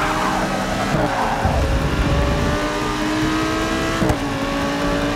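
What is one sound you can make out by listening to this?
A racing car engine drops in pitch sharply as the gear shifts up.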